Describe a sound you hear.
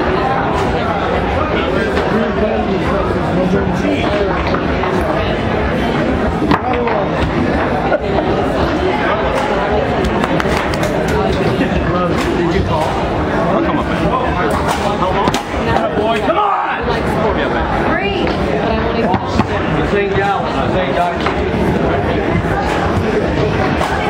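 Foosball rods clatter and the ball knocks against the table walls.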